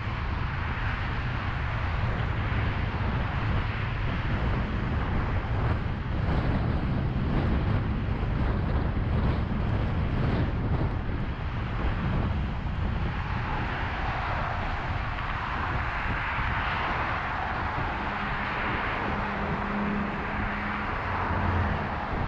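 Tyres roar steadily on a busy highway from inside a moving car.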